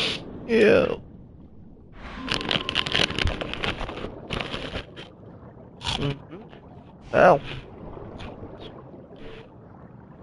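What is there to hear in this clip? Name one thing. Water splashes as a person swims.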